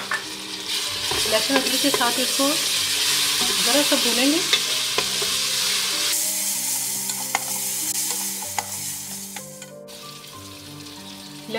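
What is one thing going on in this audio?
A wooden spatula scrapes against a metal pot.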